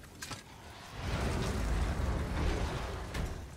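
A heavy stone door grinds and rumbles open.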